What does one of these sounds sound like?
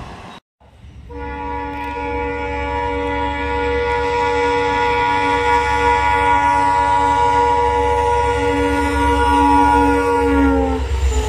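A diesel locomotive sounds a long, loud, steady horn as it approaches.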